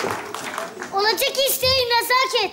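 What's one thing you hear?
A young child speaks animatedly on a stage microphone.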